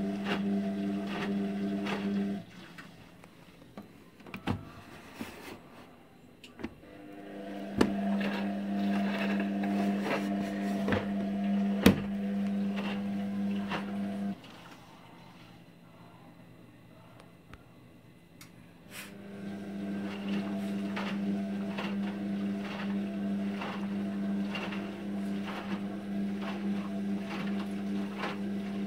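A washing machine motor hums steadily, stopping and starting again.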